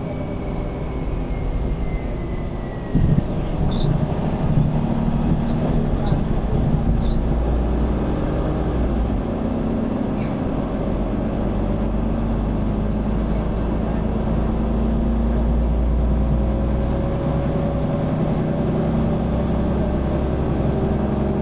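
A bus engine idles with a steady low rumble close by.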